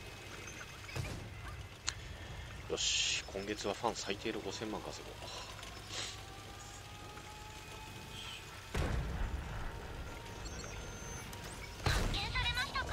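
A tank cannon fires with a heavy boom.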